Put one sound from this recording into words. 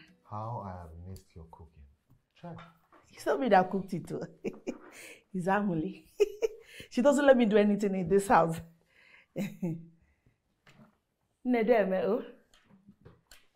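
A woman laughs cheerfully nearby.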